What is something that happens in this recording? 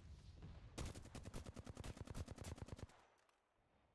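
Rapid automatic gunfire rattles in a short burst.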